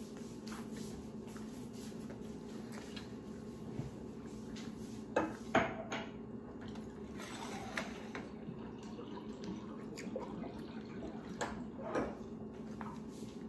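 A young woman chews and slurps softly.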